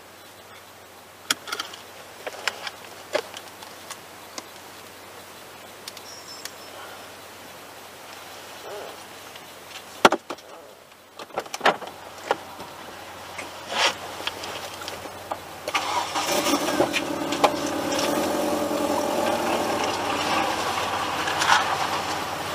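A car engine idles nearby with a low steady hum.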